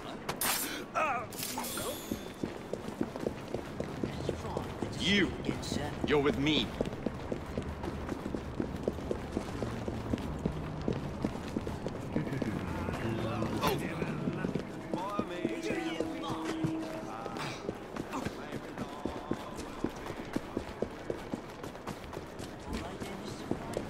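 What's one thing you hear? Running footsteps patter quickly on cobblestones.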